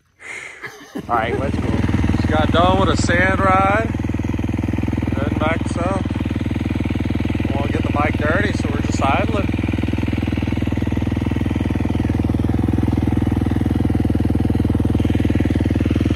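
A dirt bike engine runs with a steady buzzing drone.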